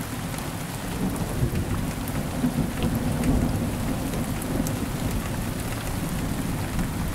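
Thunder rumbles low and deep, swelling and slowly fading.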